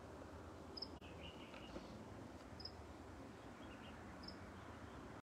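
Water laps gently at a shore.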